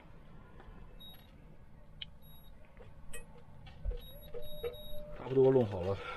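An electric cooker beeps as buttons are pressed.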